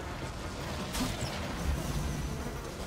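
A bright magical shimmer rings out.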